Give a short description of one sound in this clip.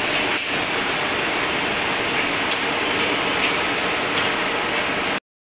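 A diesel engine idles loudly and steadily close by.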